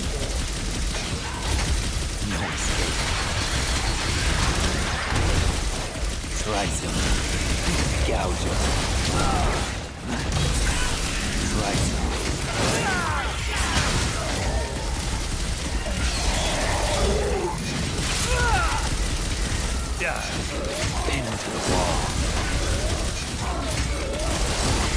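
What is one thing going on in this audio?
Swords slash and clash with sharp metallic hits.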